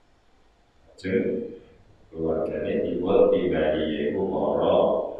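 A middle-aged man speaks slowly and steadily into a microphone.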